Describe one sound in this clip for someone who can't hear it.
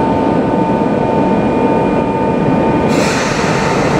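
A train's motor hums steadily while standing.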